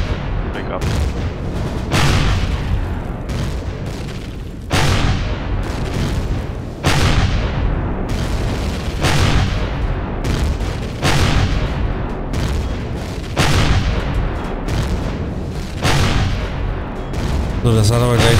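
Laser cannons fire in loud, repeated blasts.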